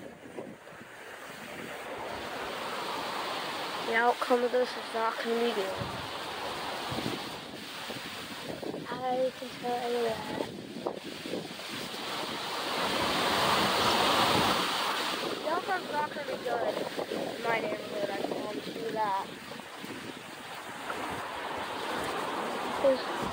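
Strong wind roars through tall trees outdoors.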